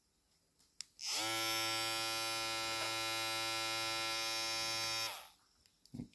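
An electric hair trimmer buzzes steadily, then stops.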